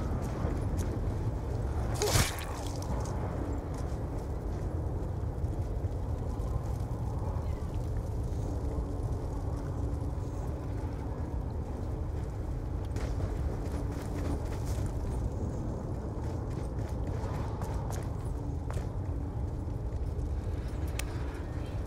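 A low wind rumbles steadily outdoors.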